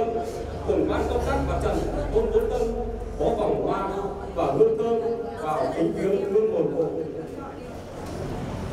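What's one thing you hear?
A middle-aged man speaks steadily into a microphone, heard through a loudspeaker.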